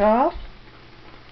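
A young girl squeals briefly close by.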